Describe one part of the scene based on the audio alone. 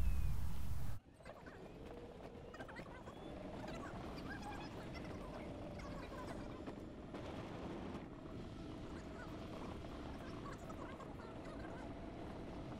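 A golf cart hums and rolls along a paved path.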